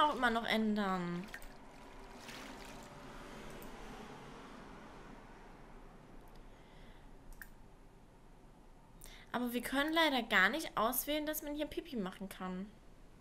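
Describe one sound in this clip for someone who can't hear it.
A young woman talks casually and close to a microphone.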